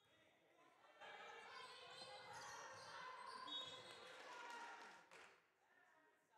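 Sneakers squeak on a hard floor in a large echoing hall as players run.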